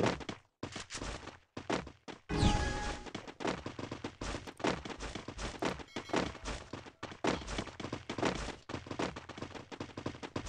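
Footsteps run quickly over stone steps and ground.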